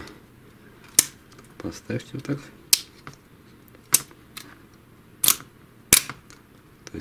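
Plastic parts click and snap against a metal frame.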